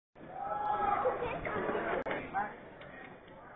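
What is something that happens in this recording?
An audience cheers and shouts.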